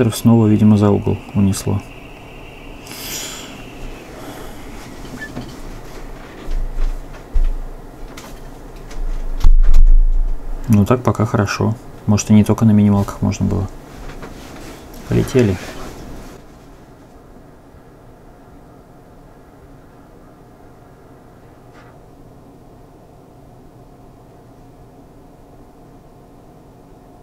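Fingers tap on a touchscreen.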